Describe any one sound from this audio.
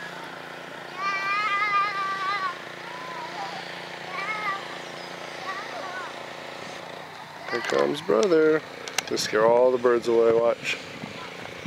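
A young child calls out.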